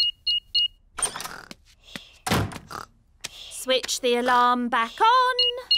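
A woman speaks warmly in a cartoon voice.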